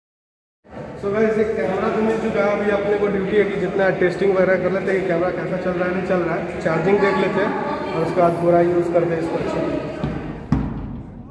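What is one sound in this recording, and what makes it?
A young man talks with animation close to the microphone in an echoing hall.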